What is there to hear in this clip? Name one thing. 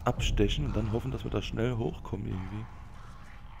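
A middle-aged man talks with animation into a headset microphone.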